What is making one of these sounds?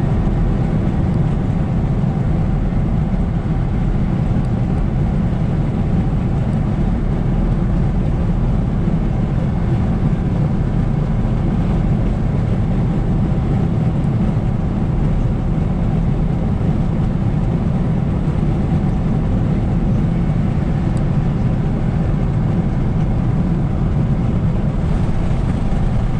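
A car's engine and tyres roar steadily on a highway from inside the car.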